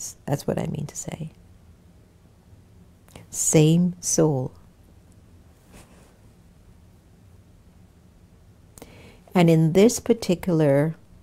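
A woman speaks calmly and clearly into a close microphone, with pauses.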